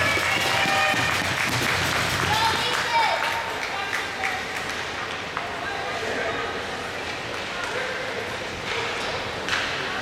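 Ice skates scrape and glide across an echoing rink.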